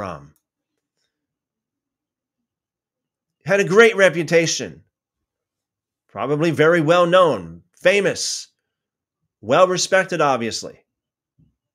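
A man reads aloud calmly into a close microphone, in short phrases with pauses.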